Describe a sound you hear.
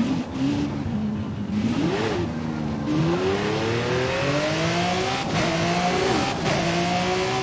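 A race car engine roars and revs higher as the car speeds up, with brief dips at each gear change.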